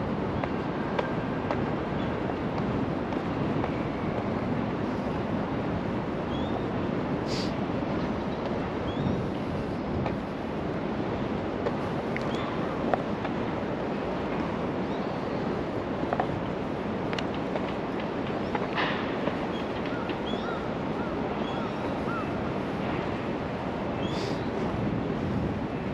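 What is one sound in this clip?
Wind blows steadily across an open space outdoors.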